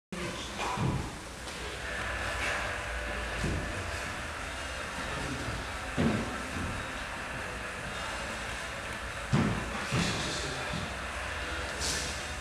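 Bare feet thump and slide on a hard floor in a large echoing hall.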